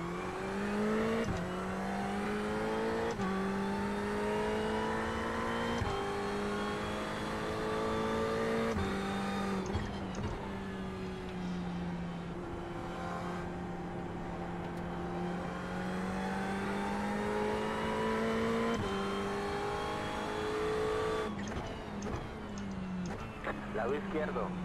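A racing car engine roars, its revs climbing and dropping with each gear change.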